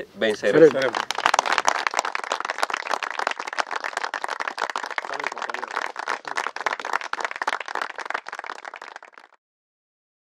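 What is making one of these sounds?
A crowd claps steadily outdoors.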